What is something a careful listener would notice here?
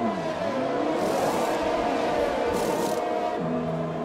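Pneumatic wheel guns whirr in short bursts.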